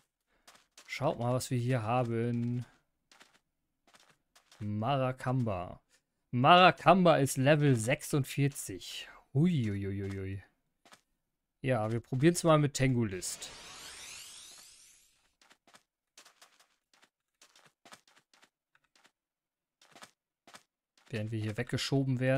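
A man talks with animation into a close microphone, in bursts with pauses.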